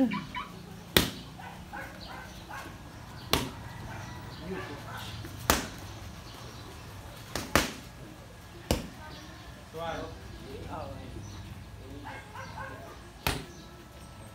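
Boxing gloves smack hard against punch mitts.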